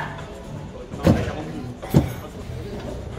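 Weight plates clank on a machine.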